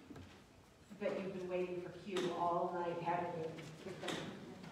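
A piano plays slow, sustained chords in a large echoing room.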